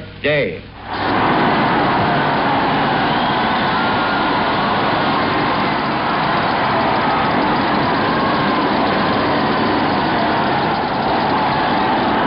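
An aircraft engine drones overhead.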